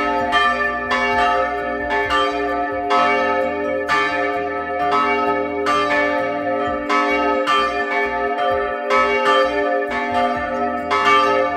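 Large church bells ring loudly and repeatedly at close range, their tones overlapping and ringing on.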